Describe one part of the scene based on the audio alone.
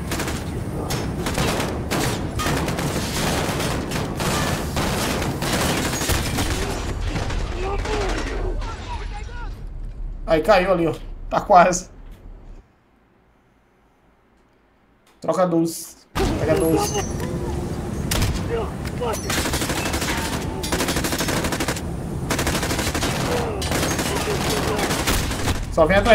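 Gunshots crack and thud in quick bursts.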